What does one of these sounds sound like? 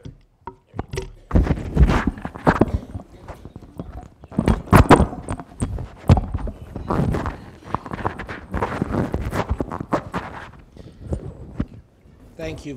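Clothing rustles and a microphone knocks as it is handled up close.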